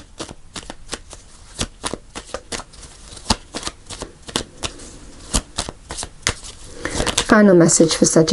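Playing cards are shuffled with quick, crisp riffling clicks.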